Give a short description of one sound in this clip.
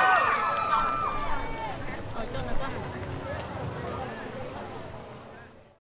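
Music plays through loudspeakers outdoors and fades away.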